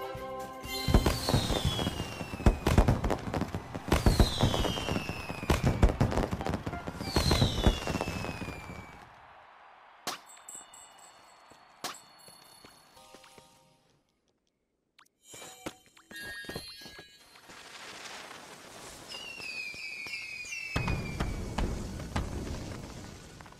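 Fireworks whistle and crackle with sharp bangs.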